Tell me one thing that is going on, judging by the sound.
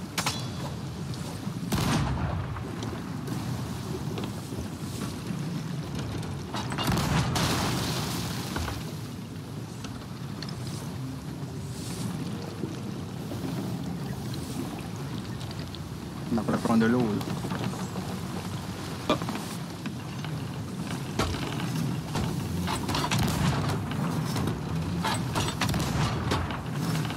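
Strong wind roars over open water.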